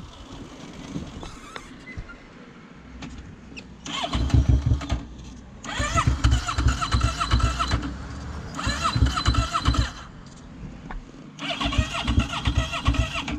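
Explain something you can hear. A quad bike engine idles and revs loudly in repeated bursts, close by.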